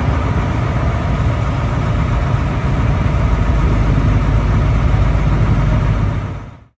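A large bus engine idles with a low, steady rumble nearby.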